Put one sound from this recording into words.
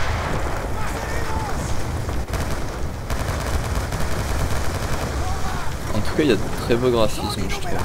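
Heavy rain falls steadily.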